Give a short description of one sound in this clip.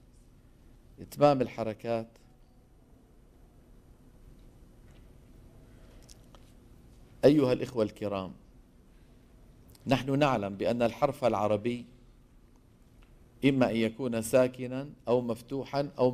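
An elderly man speaks calmly into a microphone, in bursts with pauses.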